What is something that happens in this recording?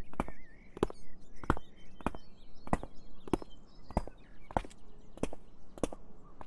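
Footsteps tread steadily on a path.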